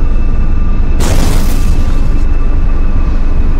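A loud rushing whoosh bursts out and slowly fades.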